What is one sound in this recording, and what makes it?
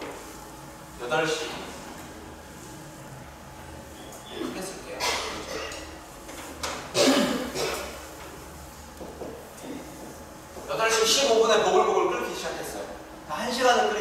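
A young man speaks nearby, explaining with pauses.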